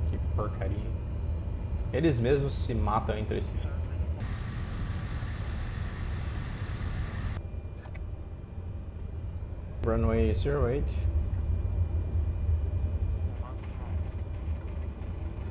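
An aircraft engine drones steadily with a low hum.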